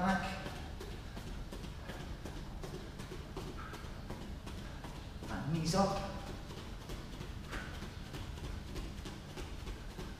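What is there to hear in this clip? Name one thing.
Bare feet thump softly on a padded mat while jogging in place.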